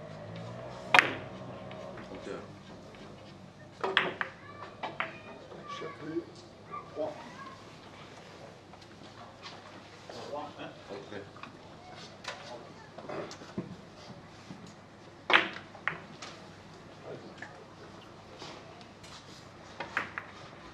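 Billiard balls click against each other and against the cushions.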